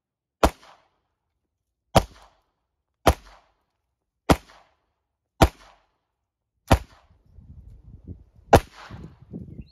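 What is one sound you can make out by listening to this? Rifle shots crack one after another, a second or so apart.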